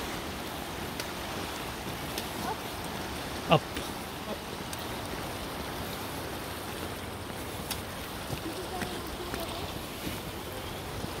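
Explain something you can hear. A shallow river rushes and babbles over rocks.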